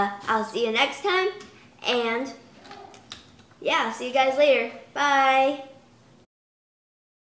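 A young girl talks brightly and cheerfully, close to the microphone.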